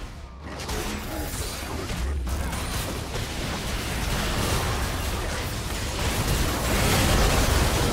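Game explosions crackle and boom, growing louder.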